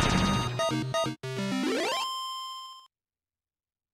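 A short, bright victory jingle plays and rings out.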